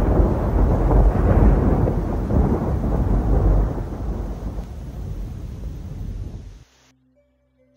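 Thunder rumbles loudly and then fades away.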